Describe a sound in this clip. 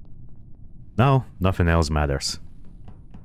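A young man speaks briefly and with animation into a microphone.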